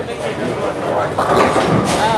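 A bowling ball rolls down a wooden lane with a low rumble.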